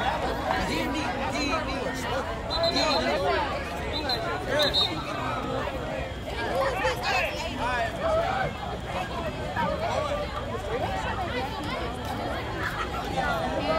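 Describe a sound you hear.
Young men nearby talk and shout.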